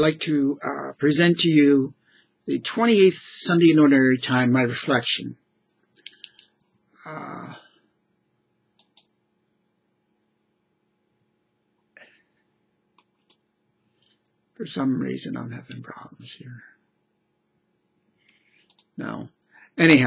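An older man speaks calmly and closely into a microphone, with pauses.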